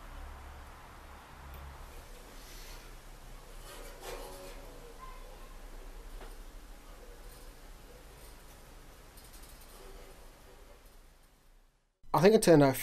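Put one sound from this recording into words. Fingers handle and press the strings of a banjo faintly.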